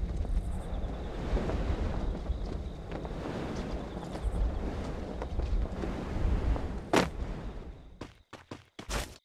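Wind rushes loudly past a parachute.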